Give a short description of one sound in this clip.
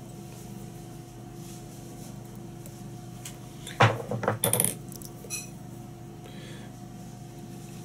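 Fingers handle a thin plastic tool with soft crinkles and taps.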